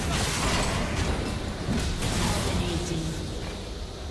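Game spells crackle and burst loudly during a fight.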